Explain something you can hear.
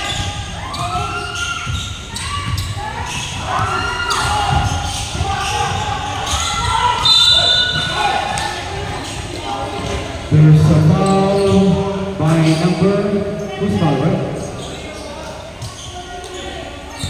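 Children shout and call out in a large echoing hall.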